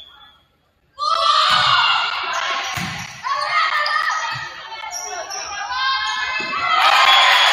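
Young women players shout and call out on the court.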